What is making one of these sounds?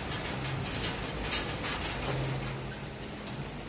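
Weight plates clank on a cable machine.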